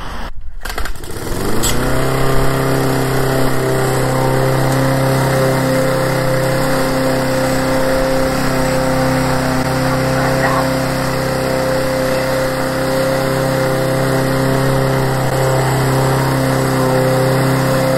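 A lawn mower engine starts up and runs with a steady loud drone.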